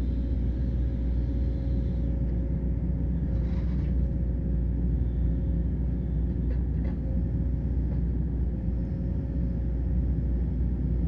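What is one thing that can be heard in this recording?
An excavator bucket scrapes and clunks against soil and stones.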